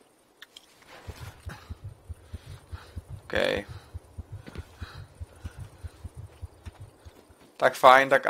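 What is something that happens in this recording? Footsteps crunch and rustle through dry grass in a steady rhythm.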